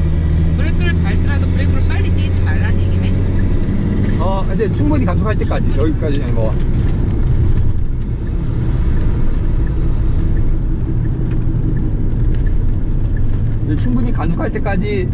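A car engine roars steadily from inside the car.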